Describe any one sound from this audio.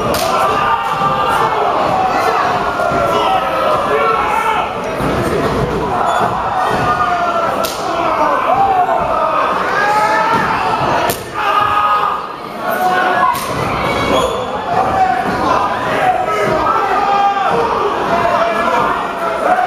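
Bodies thud onto a wrestling ring's mat.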